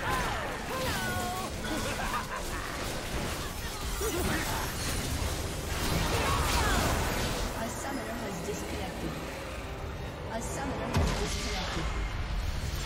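Dull booms and hits land in quick succession.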